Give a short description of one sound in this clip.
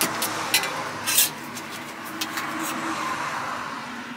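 A crepe sizzles softly on a hot griddle.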